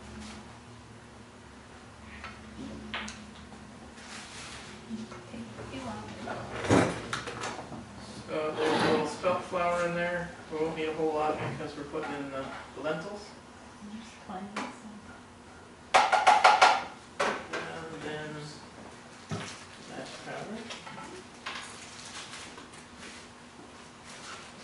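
Dishes and utensils clink.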